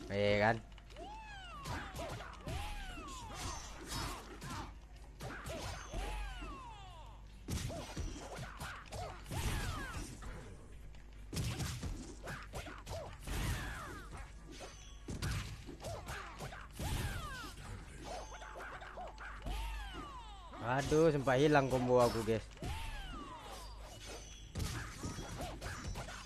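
Punches and kicks land with sharp thuds and smacks.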